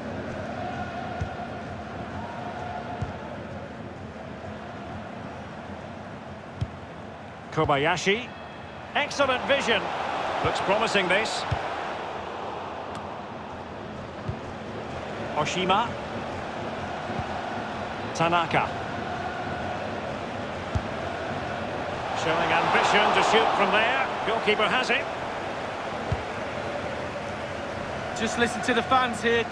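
A large stadium crowd murmurs steadily, swelling into cheers now and then.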